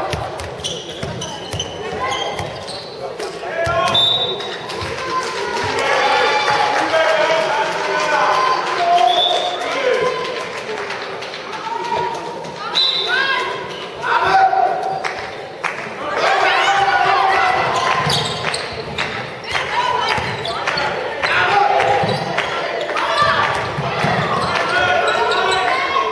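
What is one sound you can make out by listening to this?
Young girls shout and call out across a large echoing hall.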